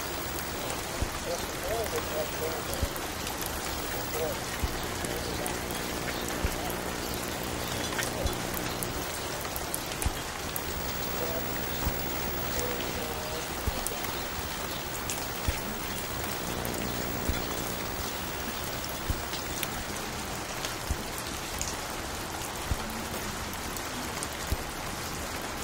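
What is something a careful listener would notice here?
A vinyl record crackles and pops as it plays.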